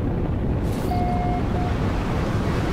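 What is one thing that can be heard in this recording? A short electronic chime beeps.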